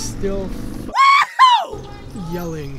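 A young man lets out a high, drawn-out exclamation.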